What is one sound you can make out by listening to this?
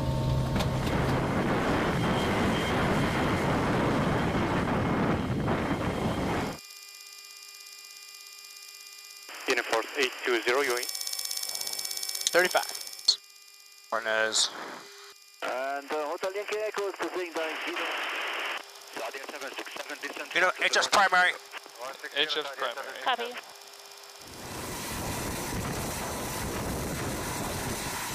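A jet aircraft's engines roar steadily outdoors.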